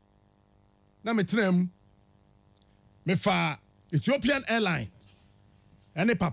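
A man speaks with animation into a close microphone, in short bursts with pauses.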